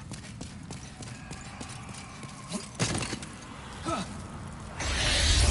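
Armored footsteps clank on stone.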